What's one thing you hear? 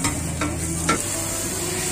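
A metal spatula scrapes against a griddle.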